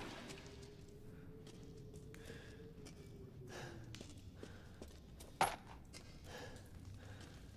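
Footsteps echo softly on a stone floor.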